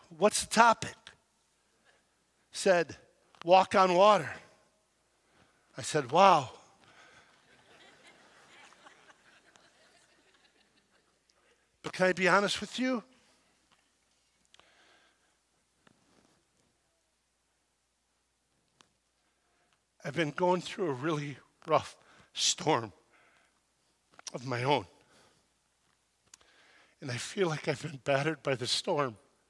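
A middle-aged man speaks with animation through a microphone in a large hall, pausing between phrases.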